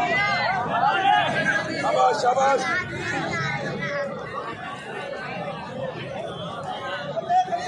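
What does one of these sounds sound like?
A crowd of men shouts and cheers nearby.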